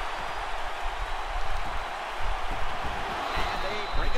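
Football players collide with dull thuds.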